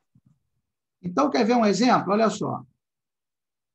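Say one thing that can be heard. A man speaks calmly through a microphone, as in an online call.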